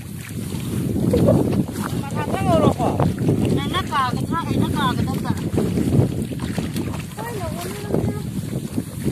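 Feet slosh and squelch through shallow muddy water.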